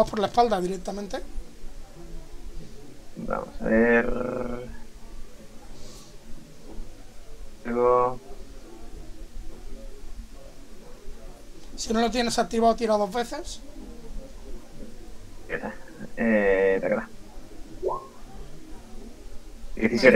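Several men talk in turns over an online call, in short bursts.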